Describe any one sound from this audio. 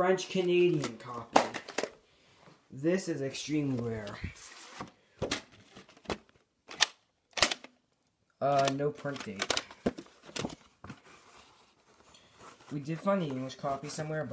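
A plastic tape case clicks and rattles in a hand.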